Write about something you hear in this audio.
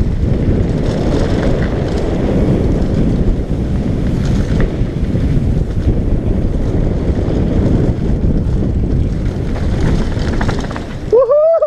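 Wind roars loudly against a moving rider.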